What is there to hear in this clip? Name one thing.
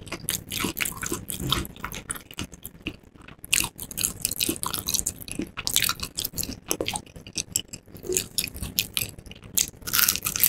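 Crispy fried batter crackles as fingers break a piece of chicken apart, close to a microphone.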